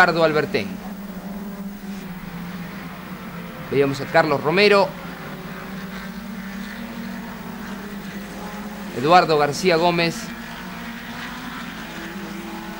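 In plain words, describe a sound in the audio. Racing car engines roar as the cars speed past.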